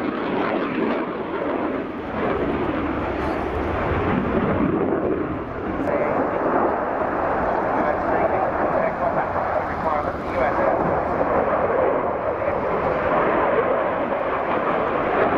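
A jet engine roars loudly overhead, rumbling steadily.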